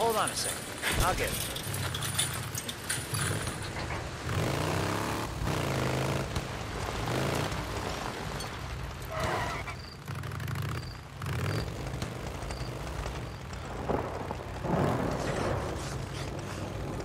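A motorcycle engine rumbles steadily and revs up and down.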